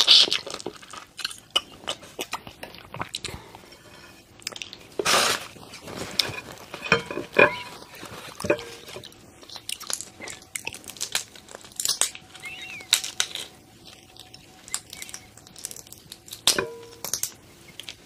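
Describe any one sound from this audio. Shrimp shells crackle and crunch as fingers peel them.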